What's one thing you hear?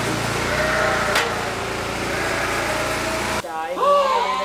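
Many sheep bleat nearby.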